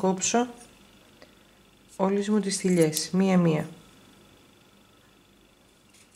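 Scissors snip through yarn.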